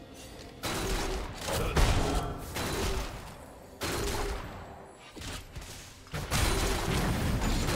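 Game spells blast and crackle in quick bursts.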